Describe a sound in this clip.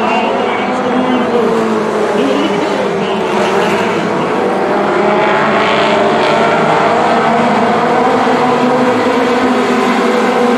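Many race car engines roar loudly and continuously as the cars speed around a track.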